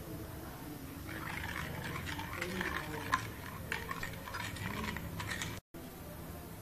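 A spoon stirs and scrapes liquid in a metal pan.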